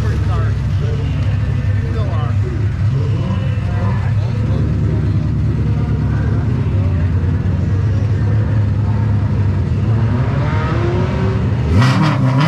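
A race car engine idles with a deep, loud, rough rumble.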